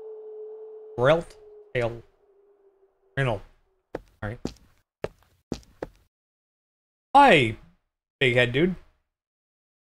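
A young man speaks with animation, in short bursts, close to a microphone.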